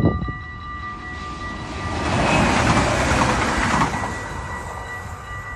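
A train rushes past close by with a rising and fading roar.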